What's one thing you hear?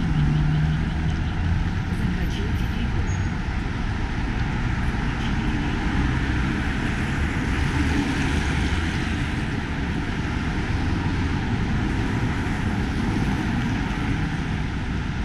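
Car engines hum as cars drive through the junction.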